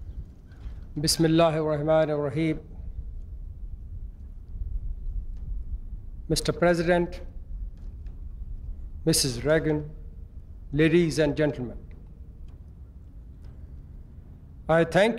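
A middle-aged man speaks slowly in short phrases through a microphone.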